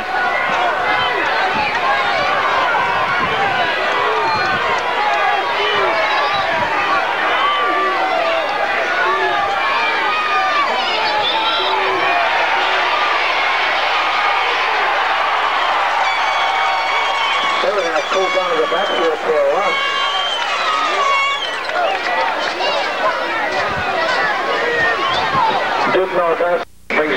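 A large crowd in the stands chatters and cheers outdoors.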